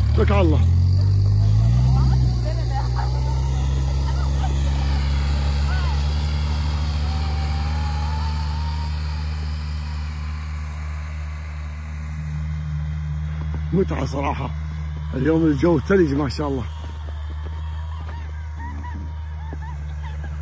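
A utility vehicle engine rumbles steadily nearby and slowly draws away.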